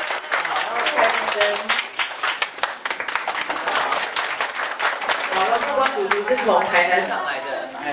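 A crowd of people claps and cheers close by.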